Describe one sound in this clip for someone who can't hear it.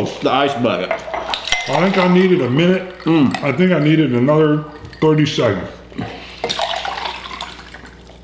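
Water with ice pours from a pitcher into a glass.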